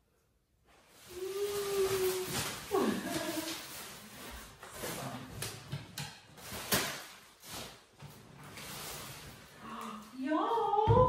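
A heavy case bumps and knocks.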